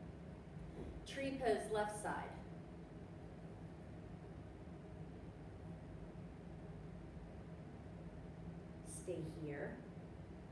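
A woman speaks calmly and briefly, close by.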